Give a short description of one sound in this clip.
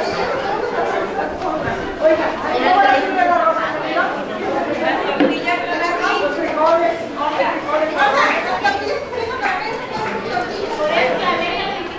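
Several people chat around a room at once, with voices overlapping.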